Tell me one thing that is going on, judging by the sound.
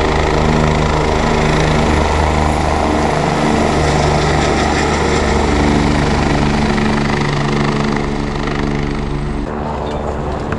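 A helicopter drones overhead with a steady rotor hum.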